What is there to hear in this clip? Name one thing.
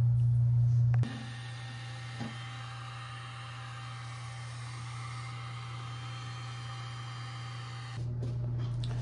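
A heat gun blows with a steady whirring hiss.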